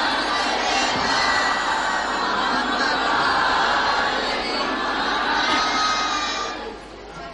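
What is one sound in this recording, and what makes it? A young woman speaks with feeling into a microphone in an echoing room.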